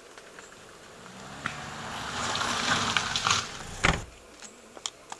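A car engine approaches, grows louder and rushes past close by.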